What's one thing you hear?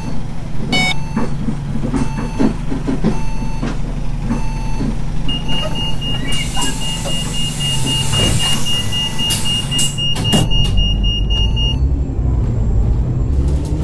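A bus engine idles with a low steady hum, then revs up as the bus pulls away.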